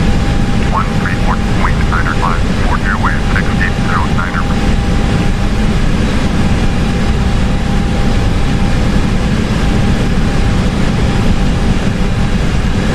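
A jet airliner's engines drone with a steady, low roar.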